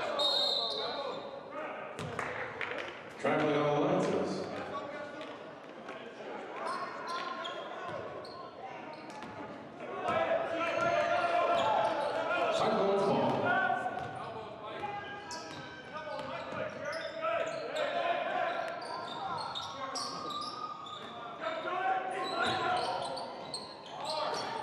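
Players and spectators shout and call out.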